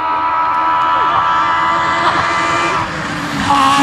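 A rally car's engine revs rise and fall with gear shifts.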